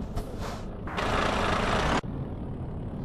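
Air brakes hiss with a sharp burst.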